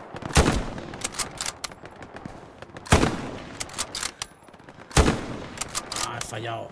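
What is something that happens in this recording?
A rifle bolt clicks and clacks as it is worked.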